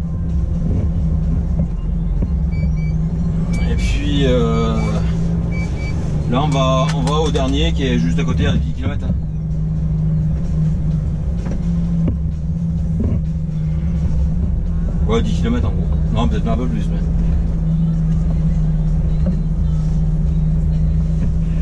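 A truck's diesel engine hums steadily from inside the cab.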